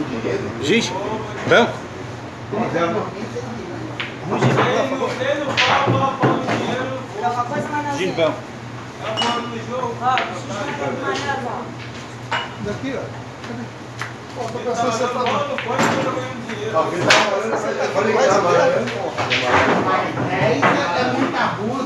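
Several men talk and call out nearby with animation.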